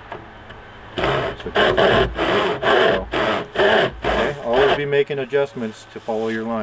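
A hand saw rasps back and forth through wood.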